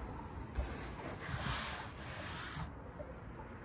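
A hand rubs across a fabric seat cushion.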